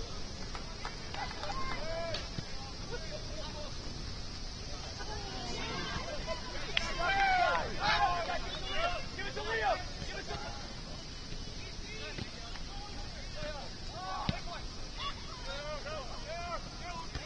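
Young players shout and call out to each other across an open outdoor field.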